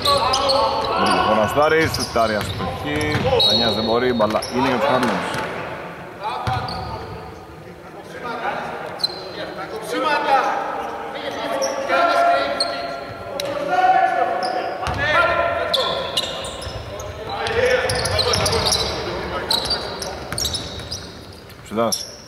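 Young women shout and call out to each other across an echoing hall.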